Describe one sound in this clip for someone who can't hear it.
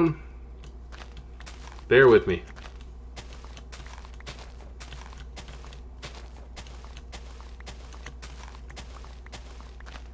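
A shovel digs into dirt with short crunching knocks.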